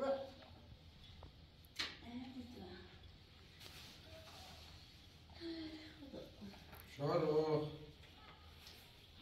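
Cloth rustles as a woman handles fabric.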